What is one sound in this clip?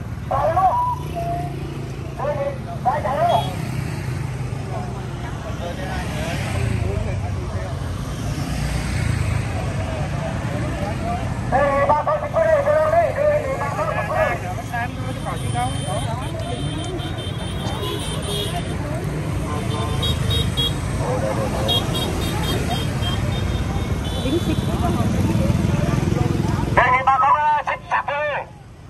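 A crowd of men chatters close by outdoors.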